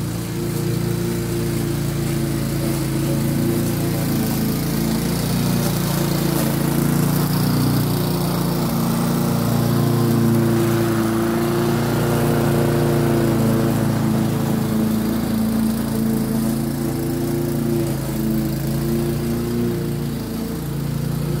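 A petrol lawnmower engine drones steadily, growing louder as it comes close and fading as it moves away.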